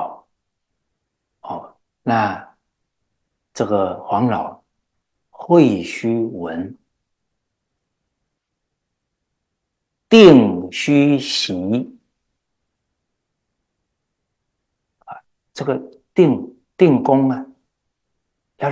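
A middle-aged man speaks calmly and earnestly into a close microphone, with pauses between phrases.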